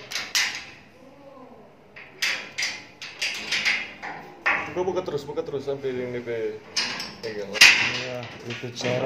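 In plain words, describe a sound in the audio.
Metal keys and a padlock clink and rattle against metal bars.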